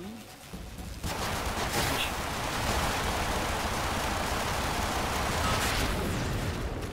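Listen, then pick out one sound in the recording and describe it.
An explosion booms with debris clattering.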